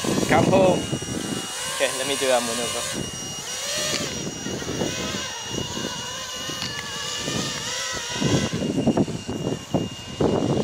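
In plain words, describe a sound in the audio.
A small drone buzzes with a high, wavering whine as it flies and climbs away.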